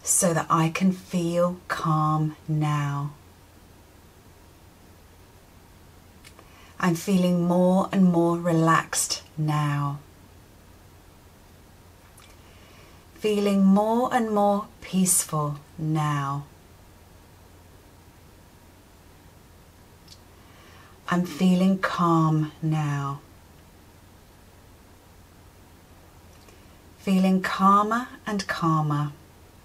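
A woman speaks calmly and slowly close to a microphone, pausing between phrases.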